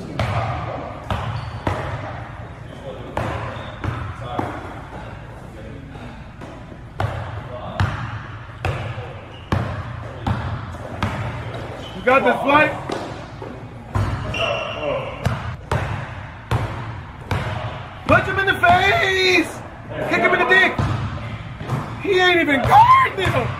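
A basketball bounces sharply on a hard court, echoing in a large hall.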